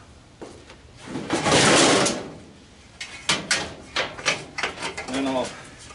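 A metal drum scrapes and clanks as it is lifted out.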